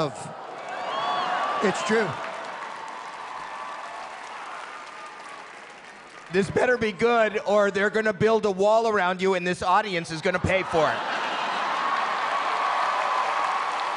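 A crowd cheers and applauds in a large hall.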